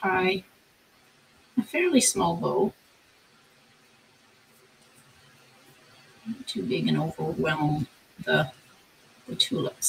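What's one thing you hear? A ribbon rustles softly as it is tied into a bow.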